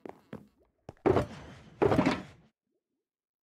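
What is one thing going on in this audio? A box lid creaks open with a hollow thud.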